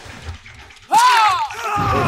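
A blade strikes flesh with a heavy, wet thud.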